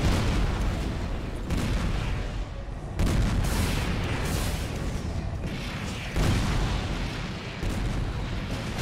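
Heavy guns fire in booming bursts.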